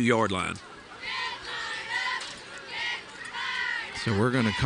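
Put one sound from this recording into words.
A crowd cheers and chants from stands across an outdoor field.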